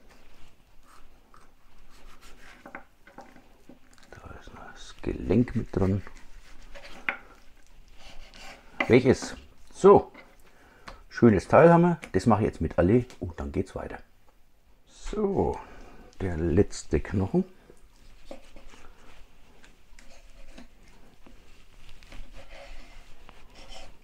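A knife slices through raw meat and taps against a wooden board.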